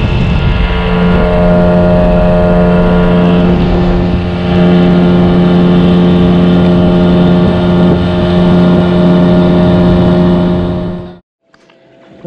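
An outboard motor drones steadily and loudly, then cuts off.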